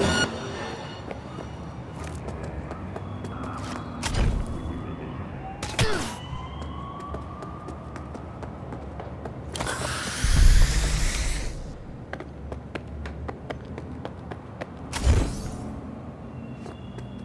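Quick footsteps patter on pavement.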